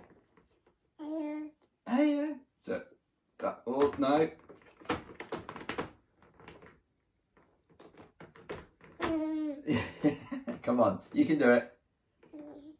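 A baby laughs and squeals close by.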